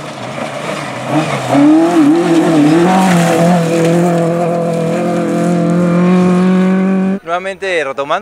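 Tyres skid and spray gravel on a dirt track.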